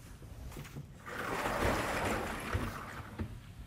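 An eraser rubs across a blackboard.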